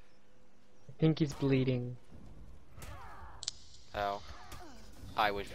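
Swords clash and ring sharply several times.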